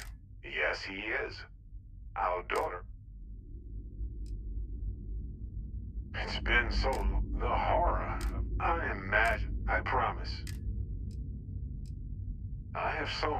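A man speaks calmly, his voice heard through a radio.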